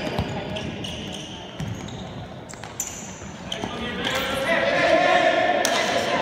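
A futsal ball is kicked, thudding in a large echoing hall.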